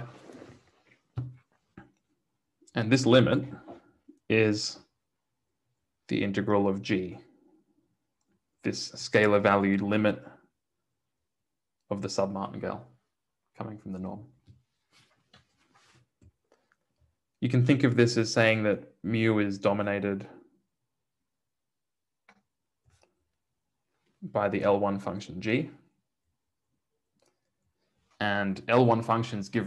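A young man speaks calmly into a close microphone, pausing between phrases.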